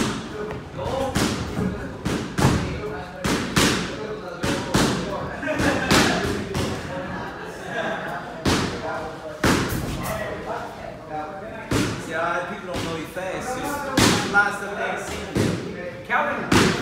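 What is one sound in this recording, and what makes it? Feet shuffle and tap on a canvas floor.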